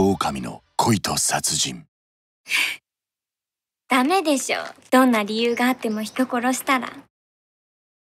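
A young woman speaks brightly, close by.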